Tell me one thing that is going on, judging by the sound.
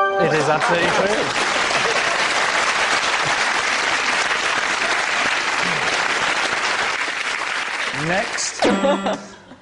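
A studio audience laughs and applauds loudly.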